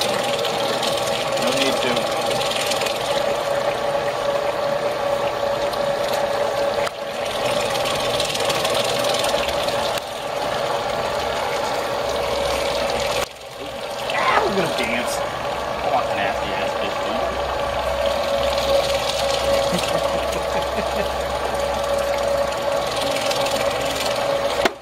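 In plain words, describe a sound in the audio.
An electric grinder motor hums steadily.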